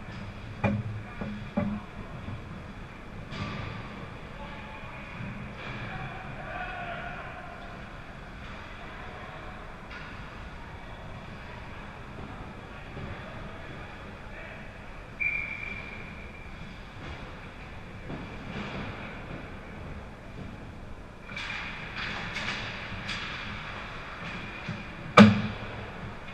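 Hockey sticks and pucks clack against the ice and boards.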